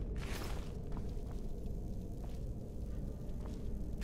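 A metal barred door clangs shut.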